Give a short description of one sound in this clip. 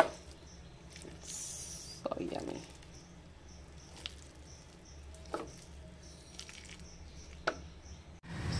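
A spoon scrapes and clinks against a pan.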